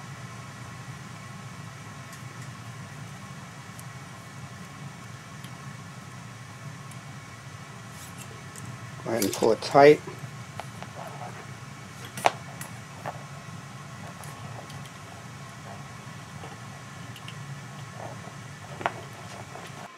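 A thin metal cable rattles and clicks against a bicycle frame.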